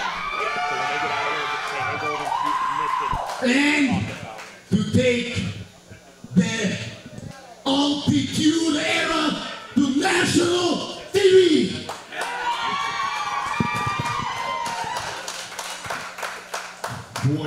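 A crowd chants and cheers.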